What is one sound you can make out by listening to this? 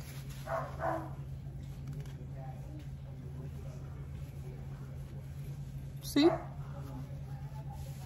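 Tissue paper crinkles close by.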